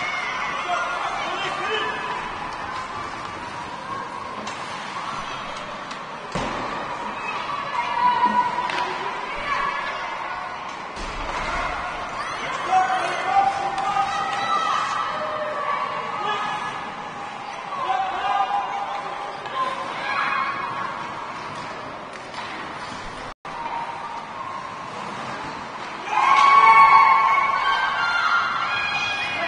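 Children shout and call out in a large echoing rink.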